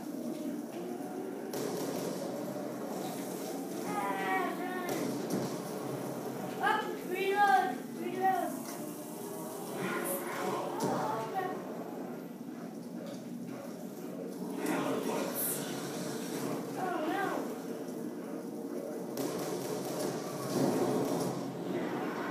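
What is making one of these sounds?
Explosions boom through a television speaker.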